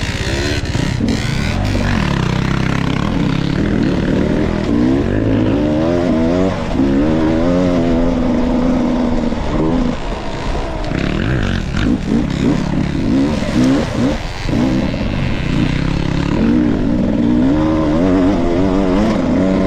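Tyres crunch over dirt and loose debris.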